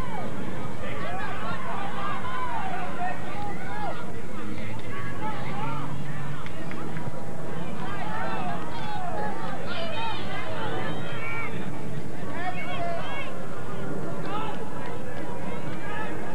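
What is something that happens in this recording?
Young players shout across an open field in the distance.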